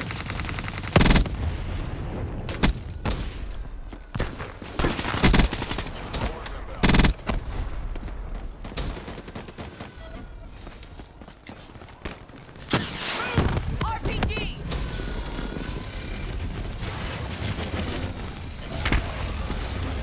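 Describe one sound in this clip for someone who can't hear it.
Gunshots fire in short, sharp bursts.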